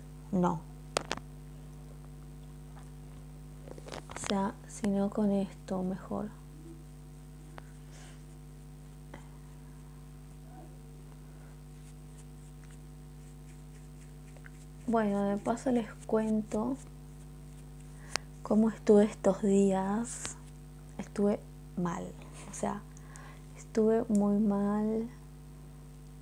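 A woman speaks calmly and close to a microphone, in short bursts.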